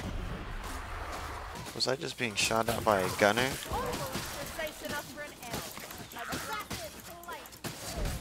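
Blades slash and thud into bodies in a fierce fight.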